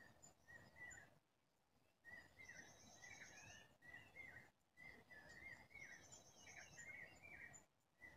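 A small bird chirps and trills close by.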